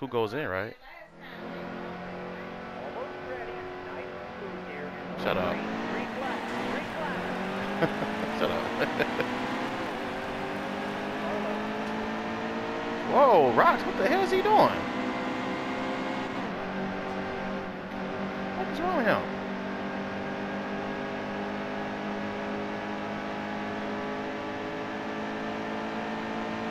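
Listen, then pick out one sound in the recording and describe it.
A race car engine roars steadily and climbs in pitch as it speeds up.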